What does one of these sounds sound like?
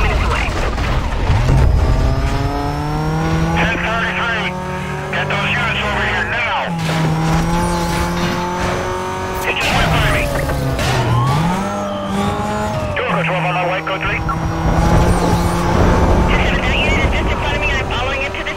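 A sports car engine races at full throttle, shifting through gears.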